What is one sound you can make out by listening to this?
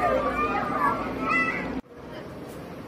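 A young child shouts nearby.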